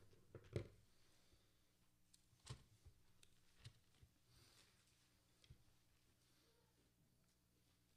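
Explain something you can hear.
Paper rustles near a microphone.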